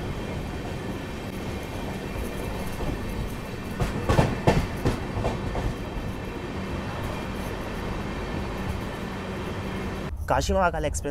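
A low outdoor rumble and distant murmur go on steadily.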